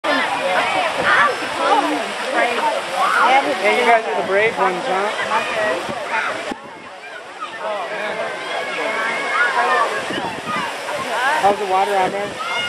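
A crowd of children and adults chatter and shout nearby outdoors.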